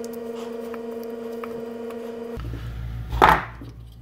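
A wooden object is set down on a tabletop with a light knock.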